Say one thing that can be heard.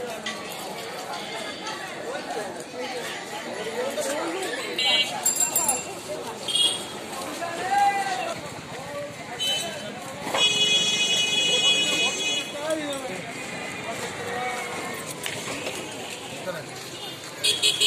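Several people chatter outdoors.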